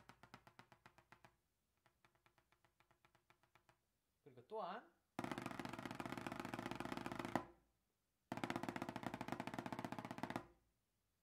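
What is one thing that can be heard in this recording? Drumsticks tap rapidly on drum pads in quick rolls with short pauses.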